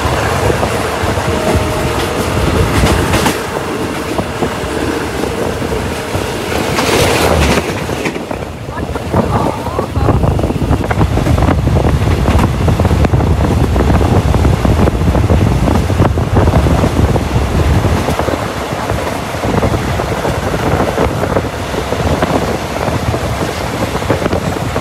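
A train rumbles and rattles along the tracks, heard from an open window.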